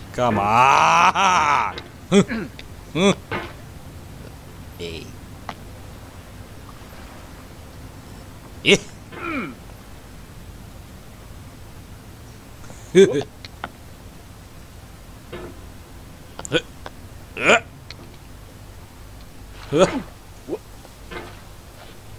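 A young man speaks close to a microphone, with animation, in short bursts.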